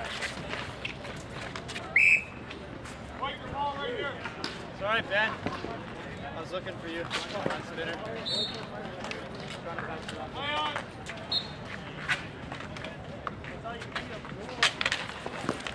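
Street hockey sticks clack and slap a ball on asphalt.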